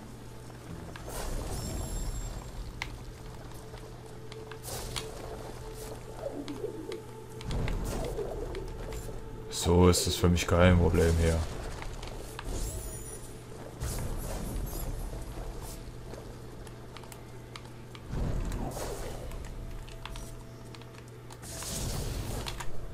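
Magical energy blasts whoosh and crackle now and then.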